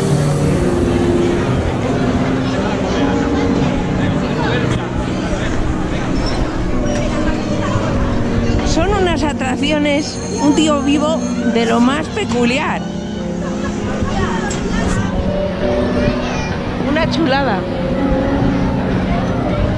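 Cheerful fairground music plays from a turning carousel.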